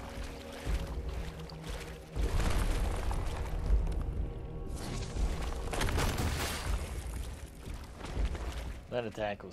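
Water splashes heavily as bodies move through it.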